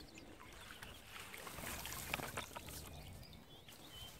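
Water splashes as a landing net is dipped into a lake.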